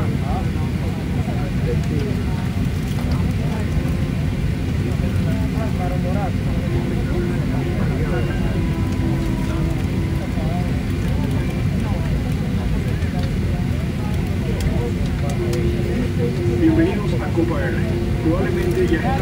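A jet engine roars steadily close by inside an aircraft cabin.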